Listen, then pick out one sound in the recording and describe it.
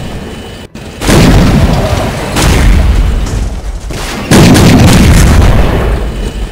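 Tank cannons fire with loud booming blasts.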